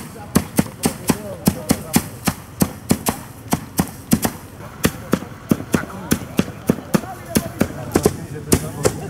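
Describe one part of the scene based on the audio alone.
Wooden flails beat on straw in a quick, steady rhythm outdoors.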